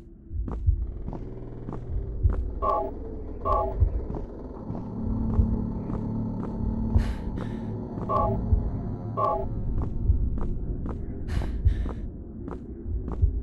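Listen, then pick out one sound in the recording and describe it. Footsteps tap steadily.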